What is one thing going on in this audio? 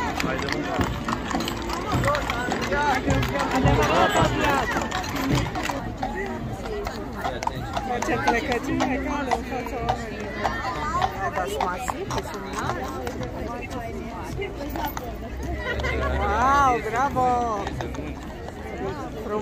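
Horse hooves clop on the paved road.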